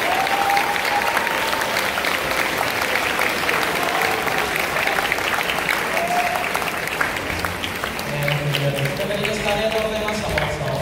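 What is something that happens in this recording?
A large crowd of young people chatters and murmurs in an echoing hall.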